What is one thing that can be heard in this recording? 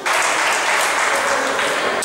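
A ball thuds off a player's foot in an echoing indoor hall.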